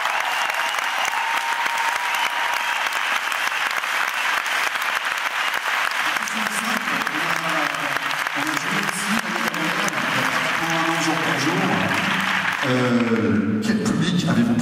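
An audience applauds and cheers loudly in a large hall.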